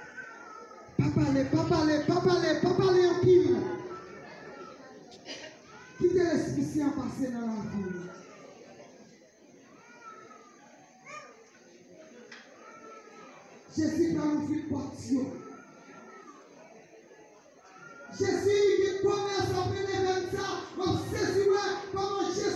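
A group of young people sings loudly together in bursts, close by.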